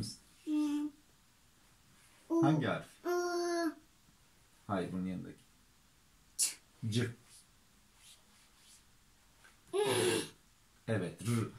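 A toddler babbles and calls out in a high voice.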